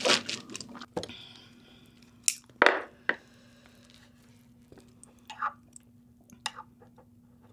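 Chopsticks click against a plate.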